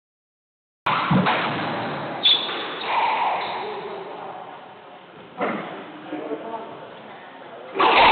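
A squash ball smacks against the walls in a hard, echoing court.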